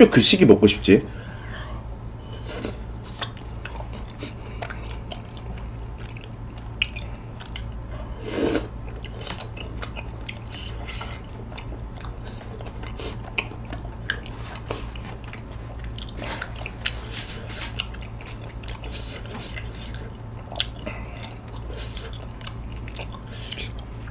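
A man chews food close to a microphone.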